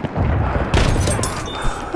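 A shotgun fires a loud, booming shot.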